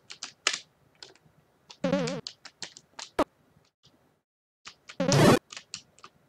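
A retro video game plays sharp electronic chirps and warbling beeps.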